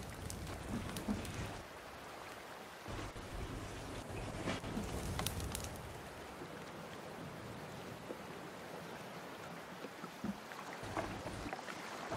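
Water laps gently against a wooden raft.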